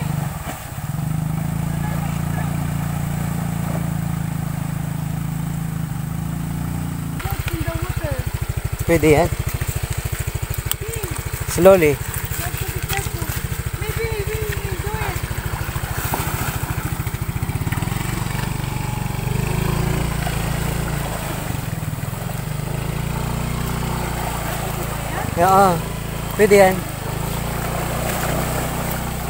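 Water splashes as a motor scooter rides through a shallow stream.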